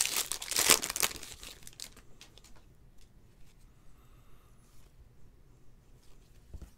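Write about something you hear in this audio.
Trading cards slide and rustle against each other in someone's hands.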